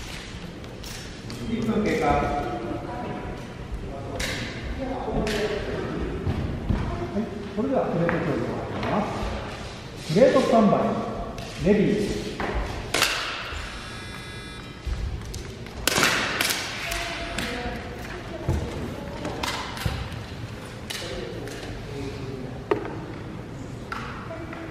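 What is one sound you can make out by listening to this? Adult men talk calmly nearby in an echoing hall.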